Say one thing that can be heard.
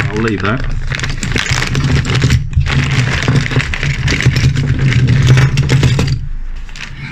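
A plastic bag crinkles and rustles loudly.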